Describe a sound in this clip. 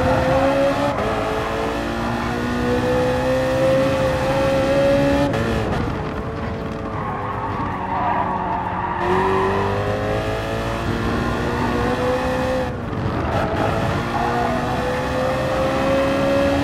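A racing car engine roars at high revs, rising and dropping in pitch as it shifts gears and brakes.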